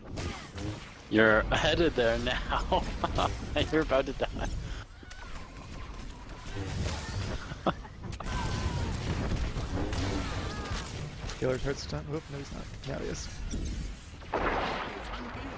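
Energy blades and blaster fire clash rapidly in a fight.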